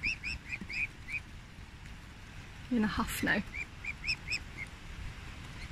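Cygnets peep in short, high chirps close by.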